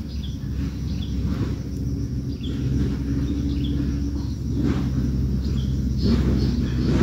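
A baby bird gives faint, short cheeps.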